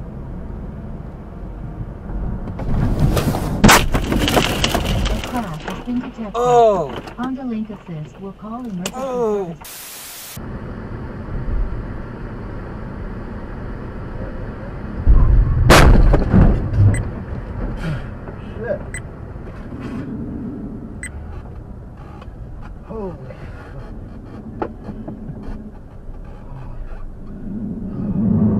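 A car engine and tyres hum on the road.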